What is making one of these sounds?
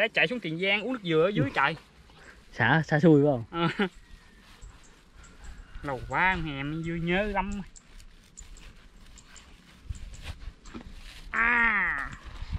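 A plastic bag rustles and crinkles.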